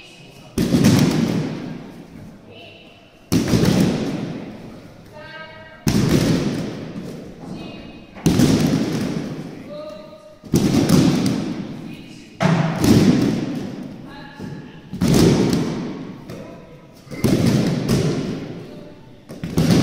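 Many children slap the mats in unison at a steady pace, echoing through a large hall.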